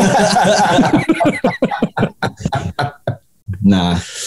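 Two men laugh heartily over an online call.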